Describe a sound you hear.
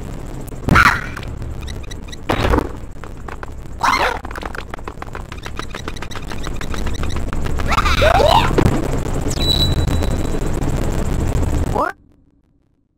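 Cheerful video game music plays.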